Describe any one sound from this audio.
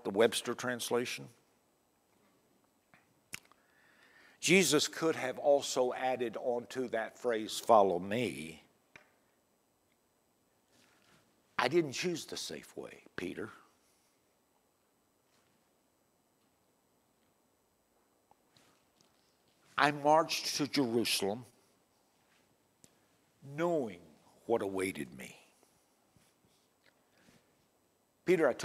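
An elderly man preaches with animation into a microphone, pausing often.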